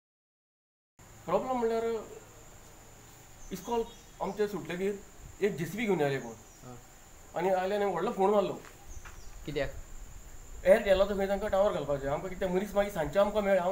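A middle-aged man speaks with animation into a microphone outdoors.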